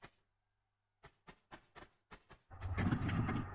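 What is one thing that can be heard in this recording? Quick footsteps patter on hard stone.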